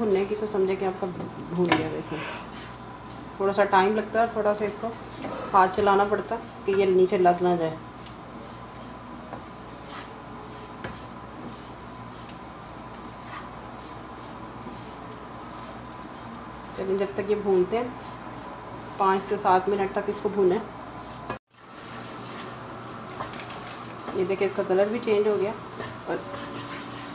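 A wooden spatula scrapes and stirs crumbly food in a pan.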